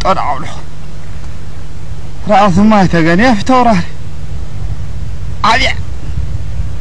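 A man calls out loudly outdoors, his voice rising and falling.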